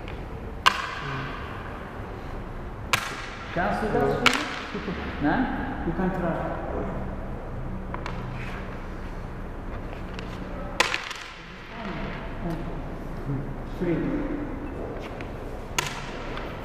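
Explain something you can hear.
Wooden game pieces clack sharply onto a board.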